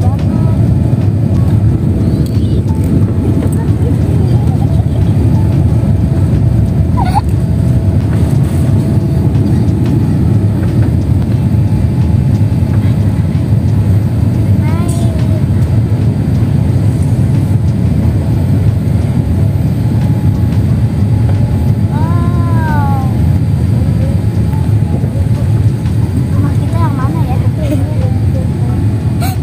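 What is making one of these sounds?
Jet engines roar steadily in a low, loud rumble.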